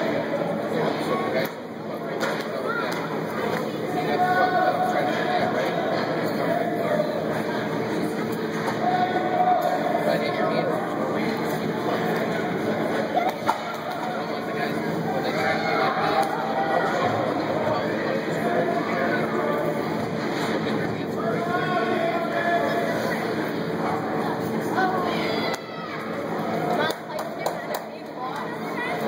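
Skate blades scrape across the ice in an echoing rink.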